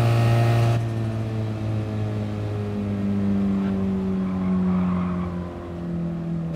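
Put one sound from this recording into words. A car engine drones steadily, its pitch slowly falling as it slows down.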